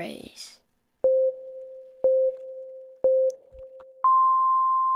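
A game's countdown beeps three times at an even pace.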